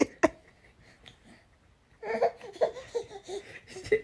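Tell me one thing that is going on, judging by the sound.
A baby giggles and laughs close by.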